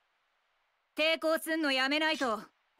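A young woman speaks firmly and threateningly, close by.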